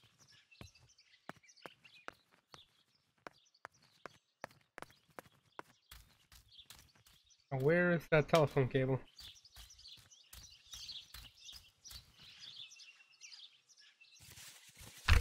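Slow footsteps tap steadily on a hard floor.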